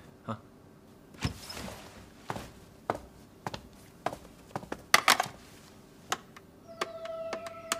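Objects are set down on a desk with soft knocks.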